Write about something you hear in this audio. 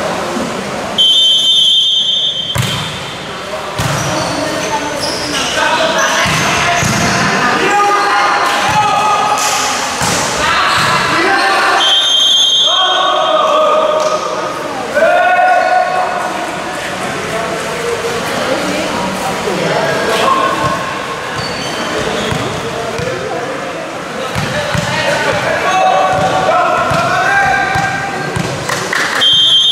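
Young men shout and call out loudly during play.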